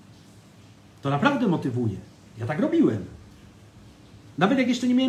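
A man speaks calmly and close to the microphone, in short phrases.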